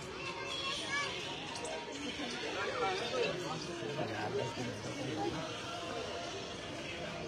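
Several men and women chatter nearby outdoors.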